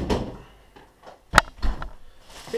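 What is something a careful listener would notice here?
A fridge door thuds shut.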